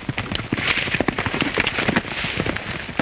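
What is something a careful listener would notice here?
A body thuds onto the dirt.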